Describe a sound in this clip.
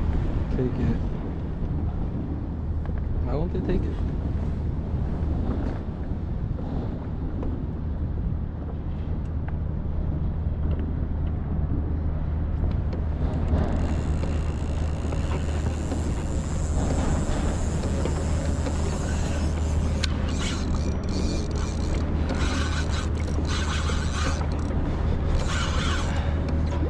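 Small waves lap against a kayak's hull.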